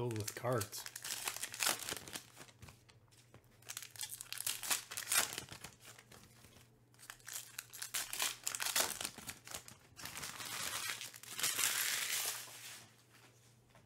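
Foil card wrappers crinkle and rustle as they are torn open.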